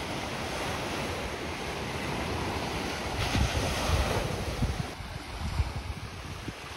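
Small waves wash onto a sandy shore outdoors.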